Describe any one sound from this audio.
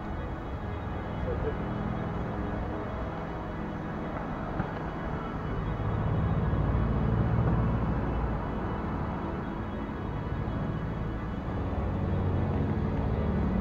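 Traffic hums steadily outdoors.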